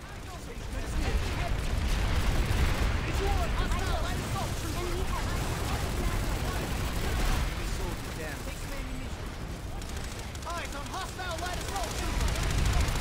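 A man talks into a headset microphone, close by.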